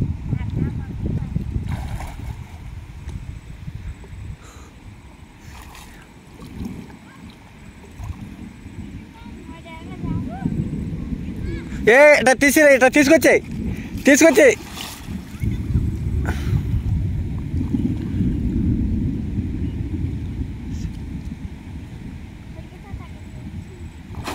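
Water splashes and gurgles as a man scoops in a shallow stream.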